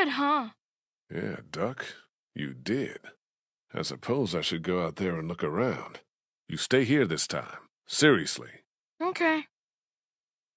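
A man answers calmly and firmly, close by.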